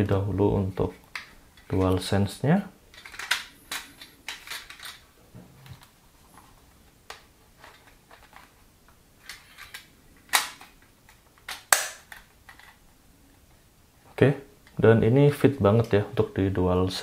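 Hard plastic rattles and scrapes as it is handled.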